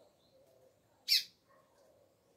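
A double-collared seedeater calls with a single sharp note.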